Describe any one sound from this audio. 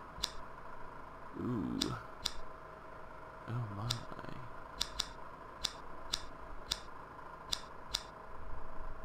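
Short menu clicks tick as selections change.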